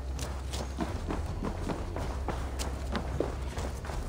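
Footsteps thud on wooden stairs.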